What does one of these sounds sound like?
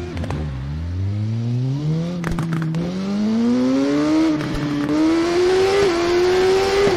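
A motorcycle engine revs higher and higher as it speeds up through the gears.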